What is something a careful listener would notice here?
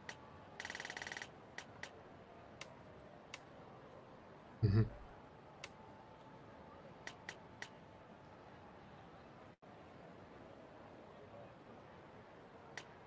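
Short menu clicks and blips sound as selections change.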